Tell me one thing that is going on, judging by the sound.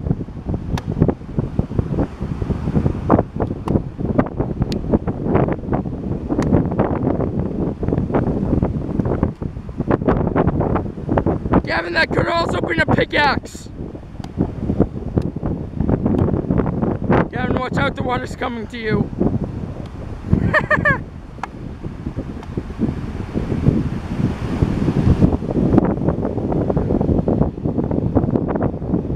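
Wind blows hard across the microphone outdoors.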